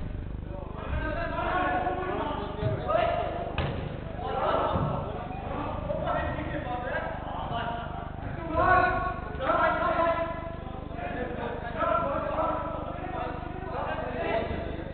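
Men shout and call out across a large echoing indoor hall.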